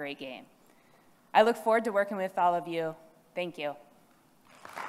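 A woman speaks through a microphone into a large hall.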